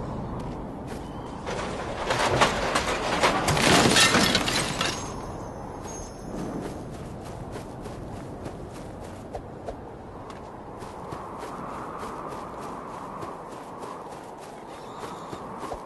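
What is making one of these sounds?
Quick footsteps pad across sand.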